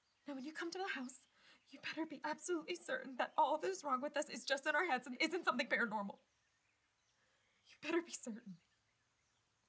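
A young woman speaks tearfully and with strong feeling, close by.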